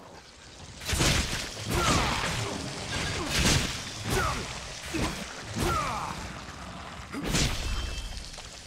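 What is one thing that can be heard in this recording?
Sword blows strike hard in quick bursts.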